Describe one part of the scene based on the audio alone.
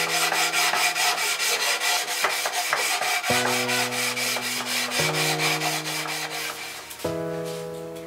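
A sanding block rubs back and forth across wood in quick strokes.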